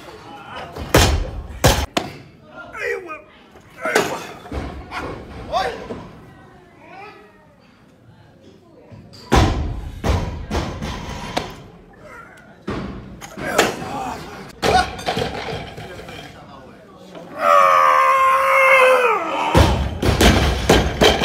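Heavy weights clang and thud onto a hard floor.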